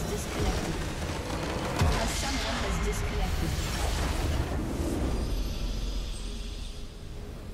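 A large explosion booms and rumbles, then slowly fades.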